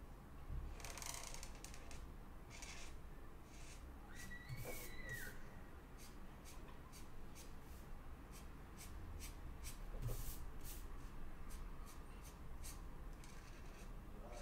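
A felt marker scratches across paper.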